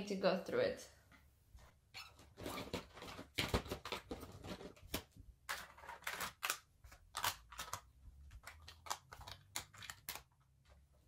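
Plastic cosmetics clatter and click as they are picked up and set down on a table.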